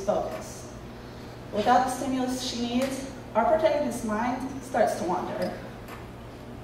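A young woman speaks calmly into a microphone over loudspeakers in a hall.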